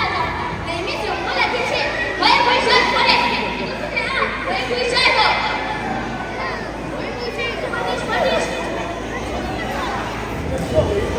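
Young girls sing together in an echoing hall.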